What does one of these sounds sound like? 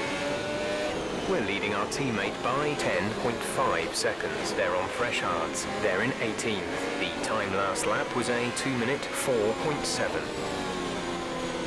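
Other racing car engines whine nearby and pass close by.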